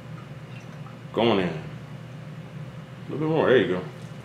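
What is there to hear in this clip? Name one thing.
Liquid pours into a bowl.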